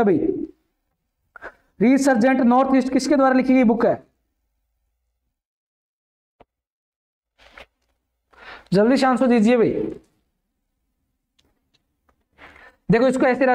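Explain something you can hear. A man speaks with animation close to a microphone, in short bursts with pauses.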